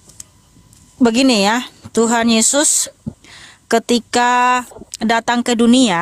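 A young woman speaks expressively into a close microphone, from 6 seconds on.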